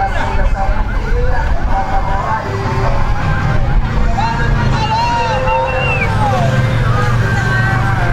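Off-road buggy engines rumble close by.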